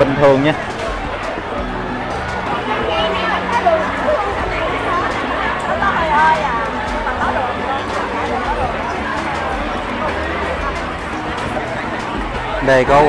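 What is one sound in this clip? A crowd of people chatter all around in a busy, echoing space.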